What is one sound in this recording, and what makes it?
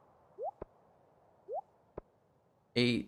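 Soft game menu clicks and short rising blips sound as items are selected.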